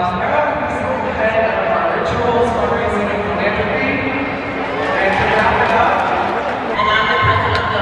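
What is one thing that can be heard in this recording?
A young man speaks into a microphone over loudspeakers in a large echoing hall.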